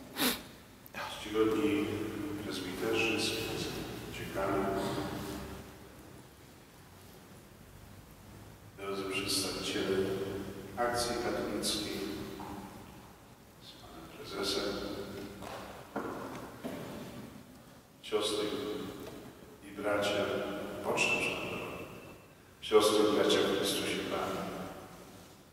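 An elderly man speaks calmly into a microphone, his voice echoing in a large hall.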